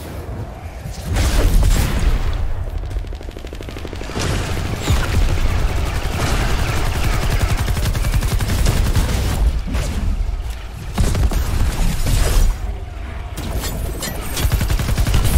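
A heavy hammer swings and thuds against enemies.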